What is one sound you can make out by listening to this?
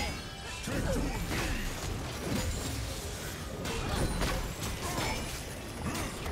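Weapons strike with sharp hits.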